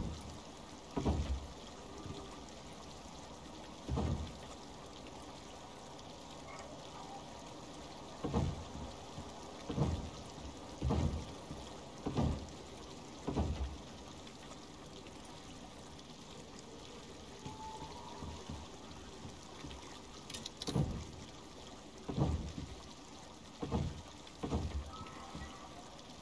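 Wooden planks thump heavily into place, one after another.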